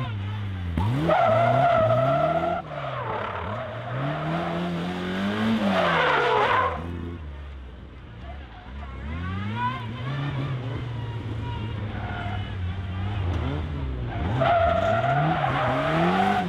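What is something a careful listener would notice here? Tyres squeal on tarmac.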